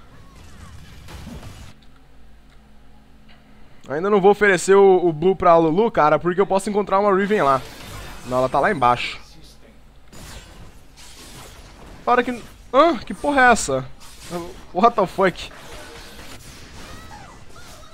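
Quick magical zaps and hits clash in a fight.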